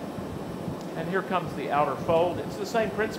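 An older man speaks calmly through a clip-on microphone.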